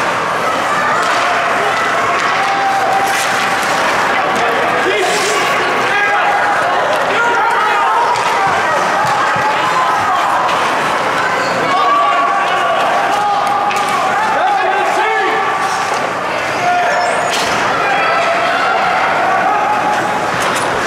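Players and spectators shout and call out in a large echoing rink.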